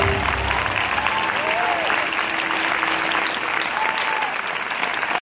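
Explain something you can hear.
An audience claps loudly in a large echoing hall.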